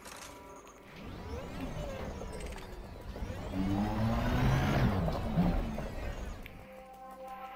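A spaceship engine roars, swelling and then easing off.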